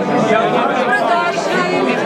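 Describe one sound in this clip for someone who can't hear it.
An elderly man laughs nearby.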